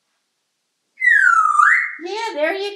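A parrot gives a loud, sliding whistle.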